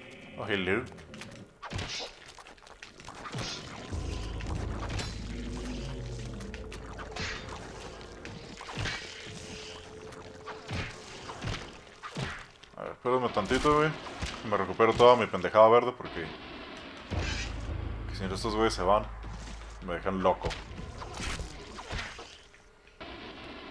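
A metal blade swishes and strikes flesh again and again.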